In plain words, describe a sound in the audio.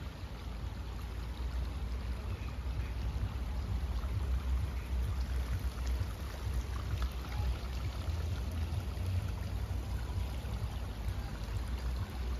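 Leaves rustle softly in the breeze.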